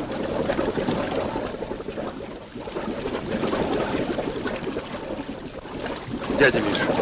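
Water rushes and splashes against a boat.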